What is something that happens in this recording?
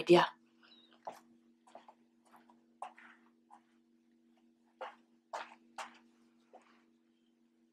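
Footsteps thud on a floor close by.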